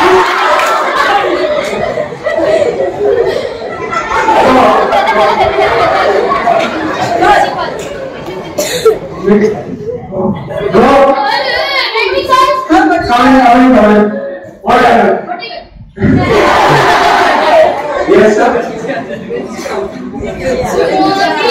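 A crowd of children chatters and laughs in an echoing hall.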